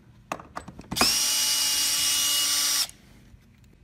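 A cordless drill whirs steadily, then stops.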